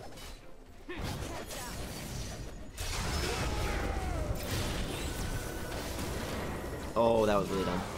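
Spells and weapons clash and crackle in a busy game fight.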